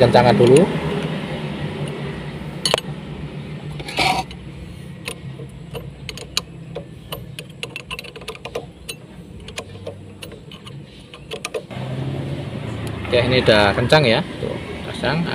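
A metal wrench clicks and taps against a brake caliper.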